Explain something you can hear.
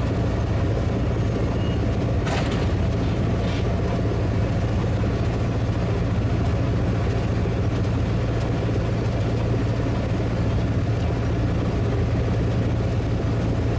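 A diesel engine of a skid steer loader rumbles steadily close by.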